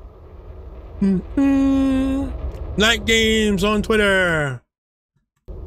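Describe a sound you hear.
A man calls out loudly in long, drawn-out tones into a headset microphone.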